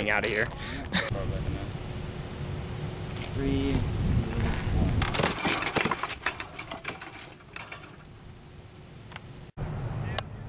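A metal spring mechanism clanks and rattles as it turns.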